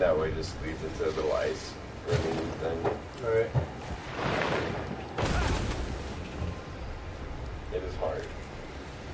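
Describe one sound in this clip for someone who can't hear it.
A snowboard hisses and scrapes over snow.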